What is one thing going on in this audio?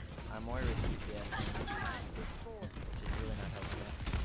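Weapons fire in short bursts in a video game.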